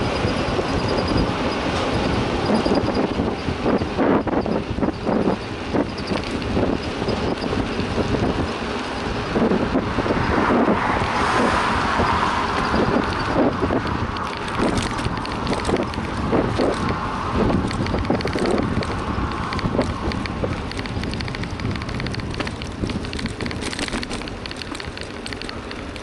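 Bicycle tyres rattle and bump over the pavement.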